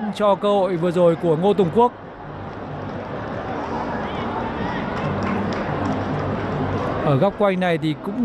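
A stadium crowd roars, swelling as an attack nears the goal.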